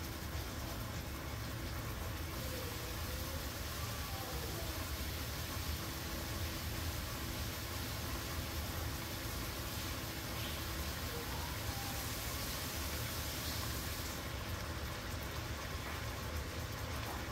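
Meat sizzles and crackles steadily in a hot pan.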